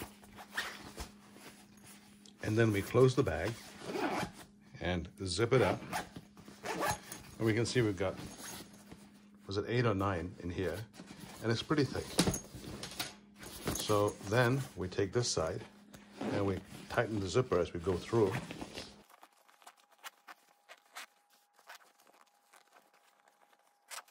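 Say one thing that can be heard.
Nylon fabric rustles as hands handle a bag.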